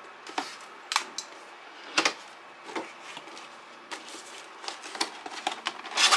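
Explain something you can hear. Hands handle a cardboard box, tapping and scraping it.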